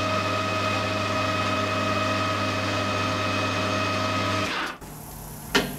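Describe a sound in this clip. A lathe motor hums steadily, then stops.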